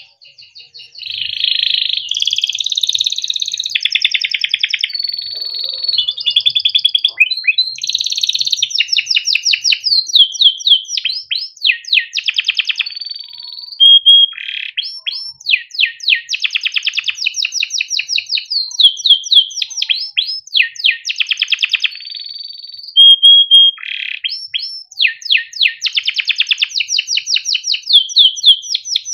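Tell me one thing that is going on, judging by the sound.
A canary sings close by in loud, fast trills and rolling chirps.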